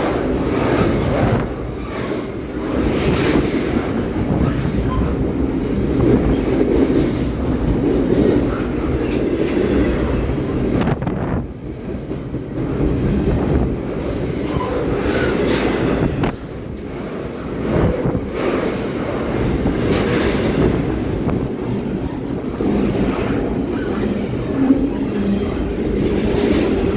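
Steel wheels clack rhythmically over rail joints.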